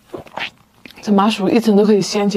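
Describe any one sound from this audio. A young woman speaks animatedly close to a microphone.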